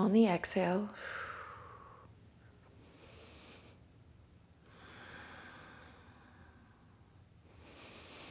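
A young woman breathes out slowly and deeply.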